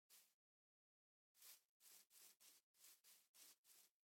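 Footsteps thud softly on grass.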